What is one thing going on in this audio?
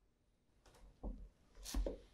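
Leather shoes knock and scuff against a wooden tabletop.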